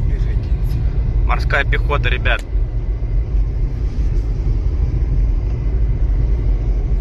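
Tyres rumble steadily on a paved road as a car drives along.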